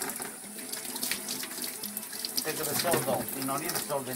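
Water splashes in a basin.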